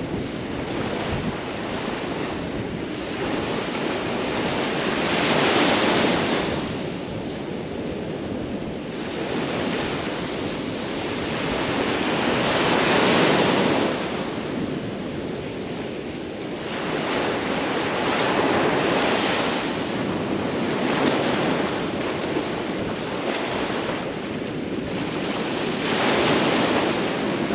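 Small waves break and wash up on a sandy shore in surges.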